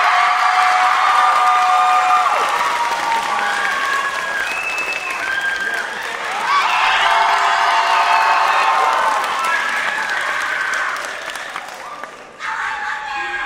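A large crowd cheers and screams loudly in a large hall.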